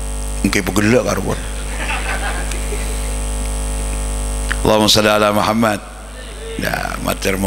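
An elderly man preaches with animation through a microphone and loudspeakers.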